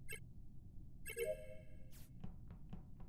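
A short chime rings as a task completes.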